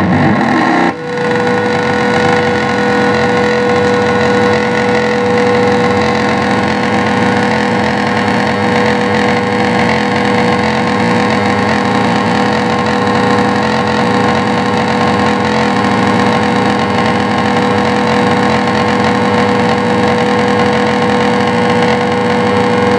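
A steady held electronic tone sounds beneath the noise.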